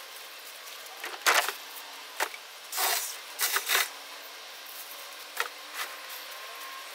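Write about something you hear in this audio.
Cut branches rustle and crackle as they are dragged over the ground.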